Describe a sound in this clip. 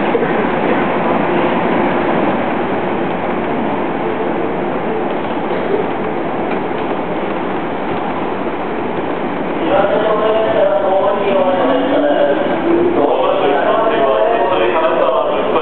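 A train rumbles and squeals as it pulls out of an echoing station.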